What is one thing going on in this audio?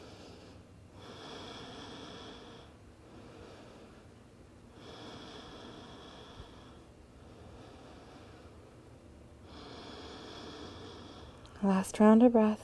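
A woman breathes in and out slowly and deeply, close by.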